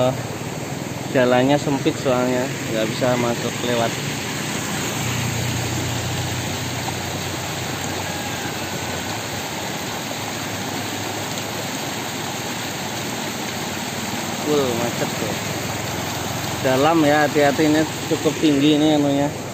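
Muddy floodwater rushes steadily along the roadside.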